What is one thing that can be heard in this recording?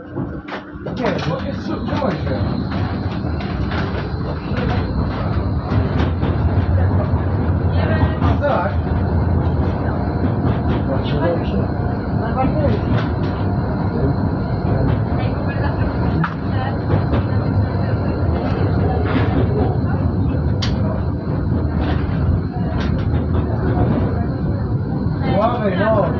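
A tram's electric motor whines steadily.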